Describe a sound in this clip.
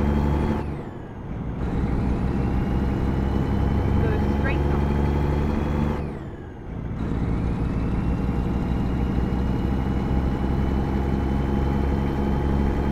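A truck engine drones steadily, dropping away briefly twice as the gears change.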